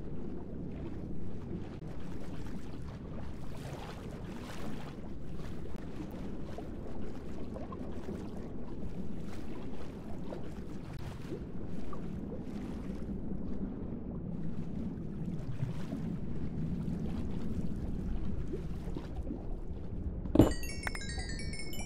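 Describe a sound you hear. Water swishes steadily as a swimmer moves underwater.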